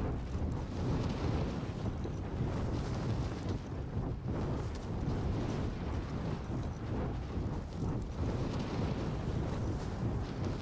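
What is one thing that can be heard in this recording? Wind rushes steadily past during a parachute descent.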